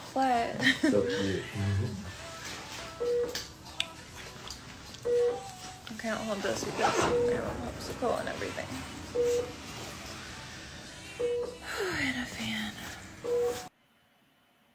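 A young woman talks casually and close, as if through a phone microphone.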